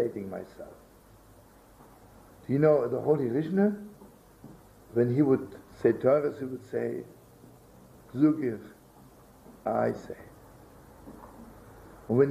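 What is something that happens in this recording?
An elderly man speaks calmly in pauses, close to a microphone.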